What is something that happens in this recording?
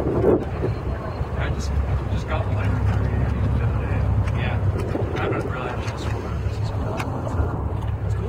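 A boat engine rumbles low and steady.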